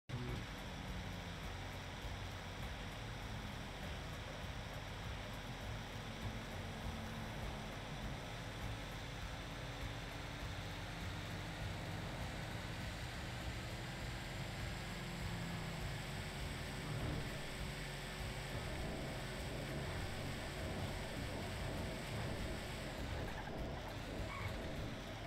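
A truck engine hums steadily as it drives at speed.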